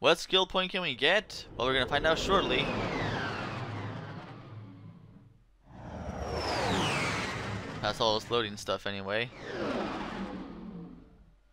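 A spaceship engine roars and whooshes as the ship streaks past.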